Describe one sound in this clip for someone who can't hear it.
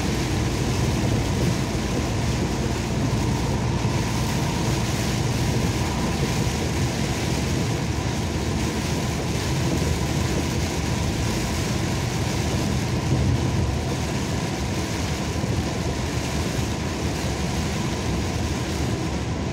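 A windshield wiper sweeps across the glass.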